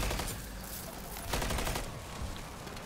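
Rapid gunfire rattles in a video game.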